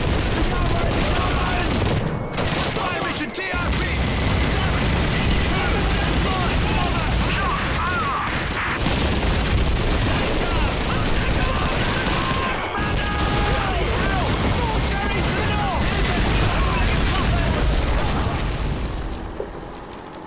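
Artillery shells explode with deep rumbling booms.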